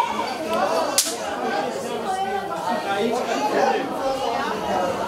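A middle-aged man speaks loudly into a microphone over a loudspeaker.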